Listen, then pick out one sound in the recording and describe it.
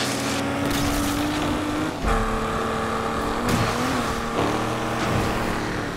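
A car engine roars at high revs, shifting gears as the car speeds up.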